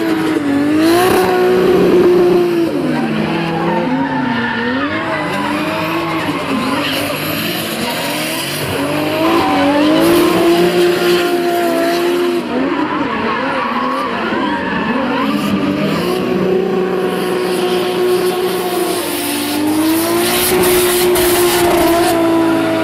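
Car tyres squeal on asphalt while sliding sideways.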